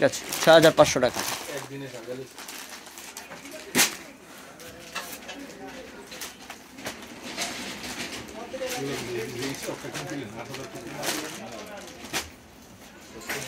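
Fabric rustles as cloth is handled and folded.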